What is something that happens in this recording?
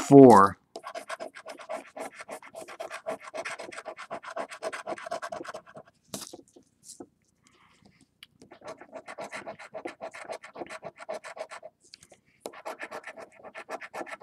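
A coin scratches rapidly across a card, with a gritty rasp.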